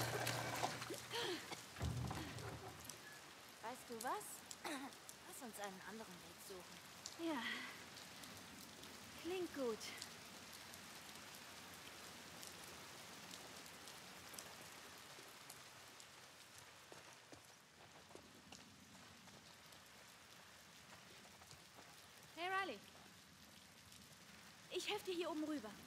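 A young girl speaks quietly nearby.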